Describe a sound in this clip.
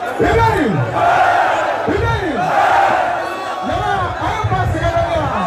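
A young man raps into a microphone, heard through a loudspeaker system.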